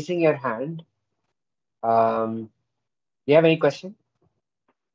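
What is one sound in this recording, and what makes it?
A young woman speaks briefly over an online call, then falls silent.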